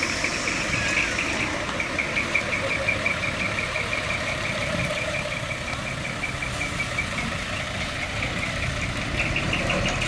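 A truck engine rumbles as the truck rolls slowly past.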